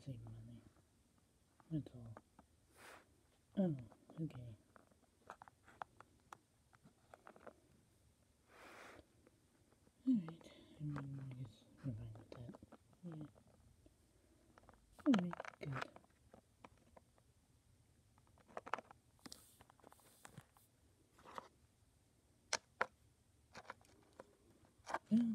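Small plastic toys tap and click against a plastic surface.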